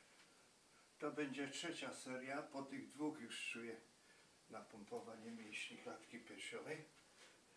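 An elderly man speaks calmly close by.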